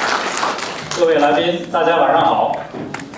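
A man speaks calmly through a loudspeaker in a large room.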